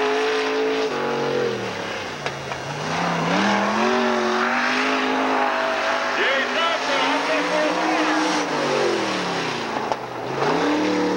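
A race car engine roars loudly, revving up and down as it speeds past.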